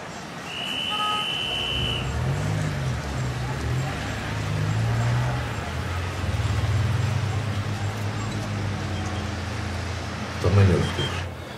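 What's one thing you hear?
Car engines hum and tyres roll along a street.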